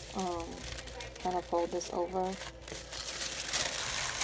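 Tissue paper rustles as it is folded over.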